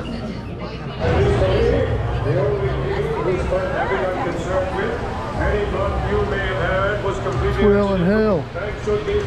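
A crowd of people talks outdoors.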